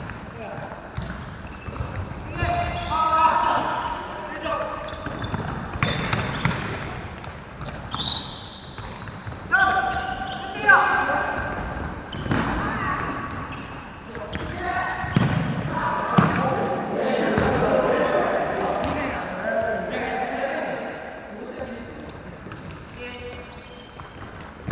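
A futsal ball thuds as it is kicked.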